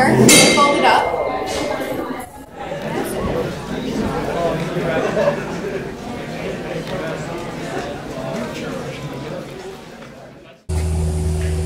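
People chatter in a large, echoing indoor space.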